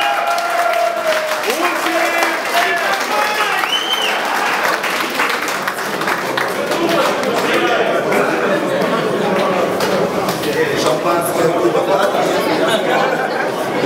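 A crowd of men and women chatters and cheers loudly in an echoing hall.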